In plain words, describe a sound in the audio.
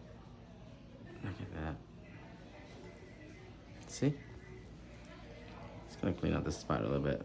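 A brush strokes softly across a fingernail.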